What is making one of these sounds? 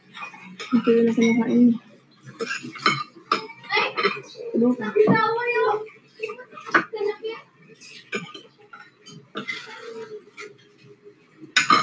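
Cutlery clinks against a plate.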